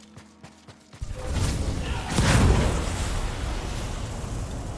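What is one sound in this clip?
A fire flares up with a roaring whoosh.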